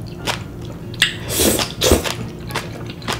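A young woman slurps noodles loudly, close to the microphone.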